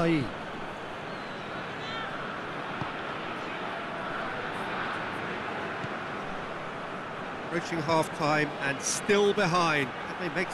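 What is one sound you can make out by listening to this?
A large stadium crowd murmurs and roars.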